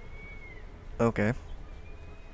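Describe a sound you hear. A young man speaks briefly and close up into a headset microphone.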